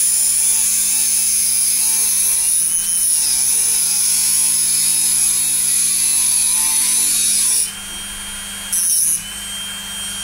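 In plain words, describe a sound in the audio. A small rotary tool whirs with a high, steady whine, then stops and briefly starts again.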